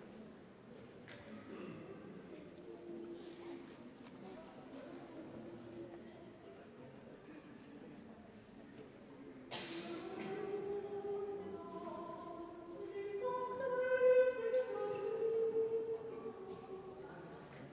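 A small mixed vocal ensemble sings unaccompanied in an echoing hall.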